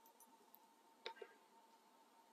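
A plastic bottle crackles briefly.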